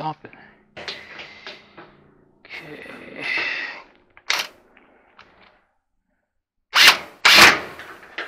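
Metal parts clank and scrape close by.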